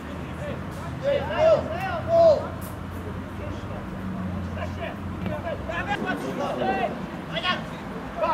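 Young men shout to each other across an open pitch outdoors.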